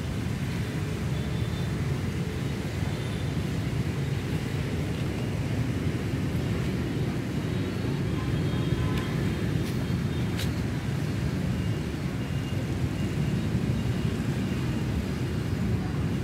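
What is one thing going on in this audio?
Steady rain falls outdoors.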